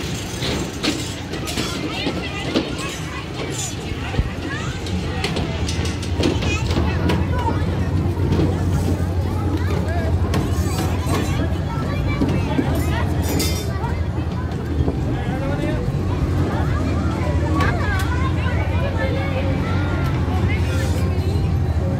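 Footsteps clatter on metal steps.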